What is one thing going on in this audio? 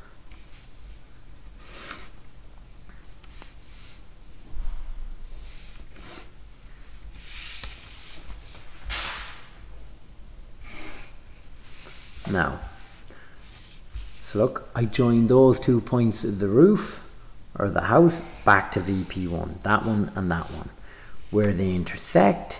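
A pencil scratches across paper.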